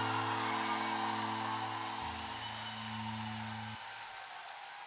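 An acoustic guitar chord rings out through a loudspeaker and then cuts off.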